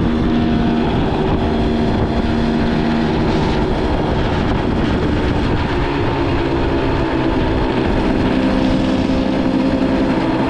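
Tyres hum on smooth pavement.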